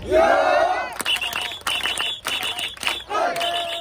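A crowd claps in quick rhythm.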